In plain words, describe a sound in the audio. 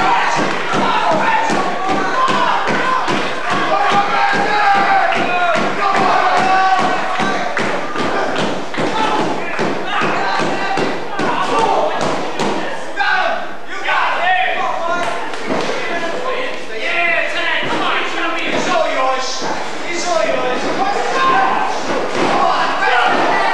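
Feet stomp and thump on a ring's canvas floor.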